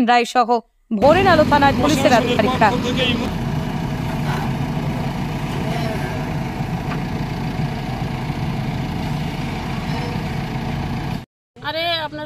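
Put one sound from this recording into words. A digger engine rumbles steadily.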